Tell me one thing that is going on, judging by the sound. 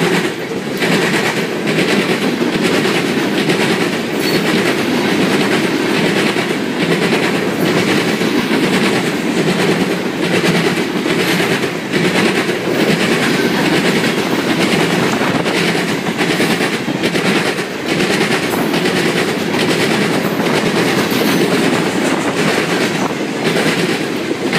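Train wheels clack rhythmically over rail joints.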